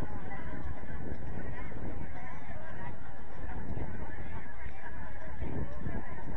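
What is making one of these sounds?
Young women call out and chatter to each other across an open field.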